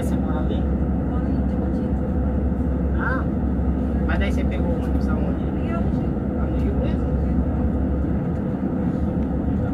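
A vehicle engine hums steadily from inside as it drives along a road.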